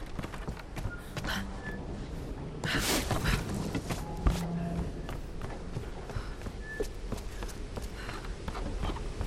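Footsteps thud and scuff on hard ground at a quick pace.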